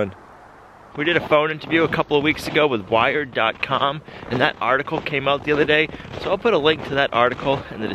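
A young man talks with animation close to a microphone, outdoors.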